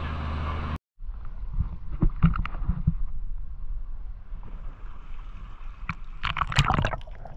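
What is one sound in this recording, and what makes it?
Small waves slosh and splash close by.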